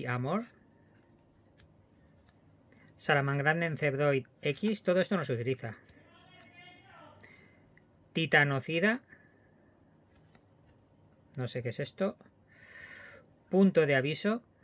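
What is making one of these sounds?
Playing cards slide and rustle against each other in a hand.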